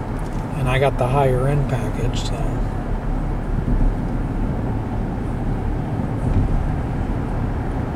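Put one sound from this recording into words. Music plays from a car stereo.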